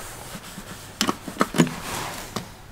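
A lift call button clicks as it is pressed.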